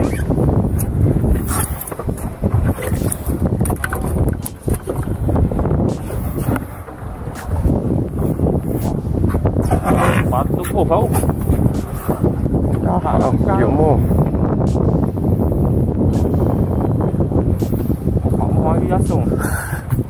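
Wind blusters loudly against the microphone outdoors.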